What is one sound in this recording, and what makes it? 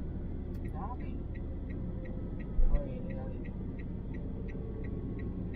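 A car's turn signal ticks evenly.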